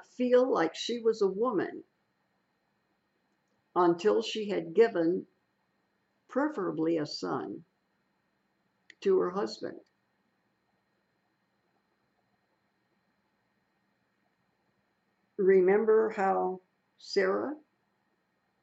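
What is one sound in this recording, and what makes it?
An elderly woman speaks calmly up close, pausing between phrases.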